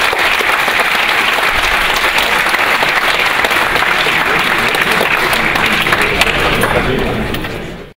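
A large audience applauds in an echoing hall, then the applause fades.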